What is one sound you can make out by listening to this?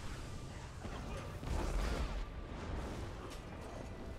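Fire roars and crackles in bursts.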